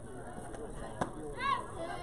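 A bat cracks against a softball.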